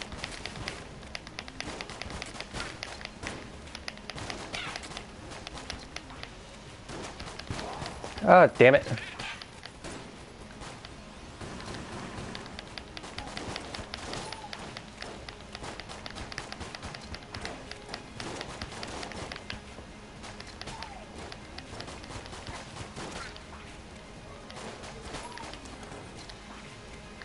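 Gunshots fire rapidly in quick bursts.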